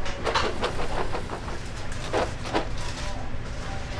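Chopped vegetables spill and rustle into a metal tub.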